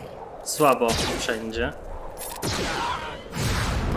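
A laser beam blasts with a loud whoosh.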